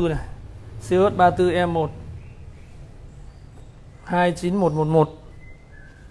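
A man speaks calmly close to the microphone.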